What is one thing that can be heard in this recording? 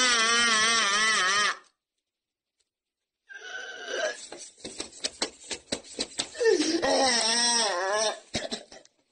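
A man wails and sobs loudly, close by.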